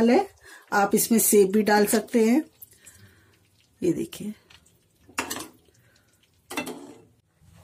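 A ladle stirs thick curry in a pot with soft squelching.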